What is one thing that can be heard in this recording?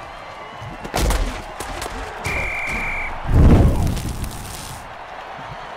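Heavy bodies collide with loud thuds.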